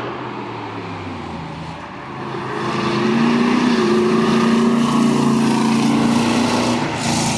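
A sports car engine roars as it approaches fast and speeds past.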